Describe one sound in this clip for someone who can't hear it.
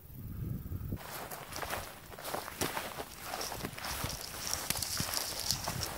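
Wind rustles through tall grass outdoors.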